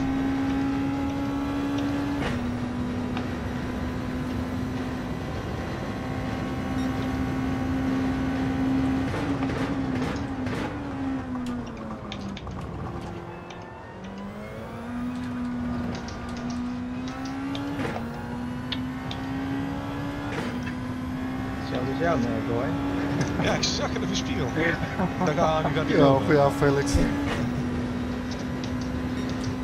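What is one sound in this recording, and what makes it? A racing car engine roars at high revs, shifting gears, slowing for a corner and speeding up again.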